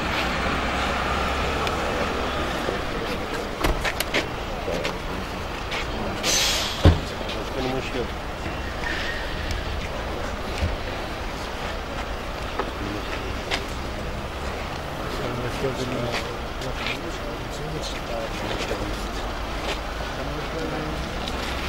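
Several men talk with each other nearby in a calm, friendly way.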